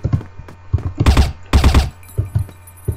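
A rifle fires a short burst of gunshots.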